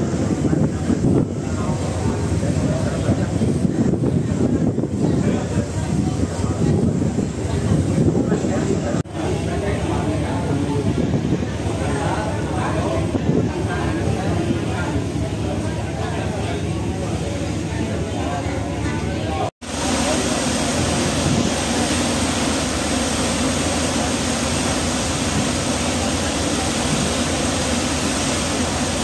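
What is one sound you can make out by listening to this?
Water rushes and splashes against a moving ship's hull.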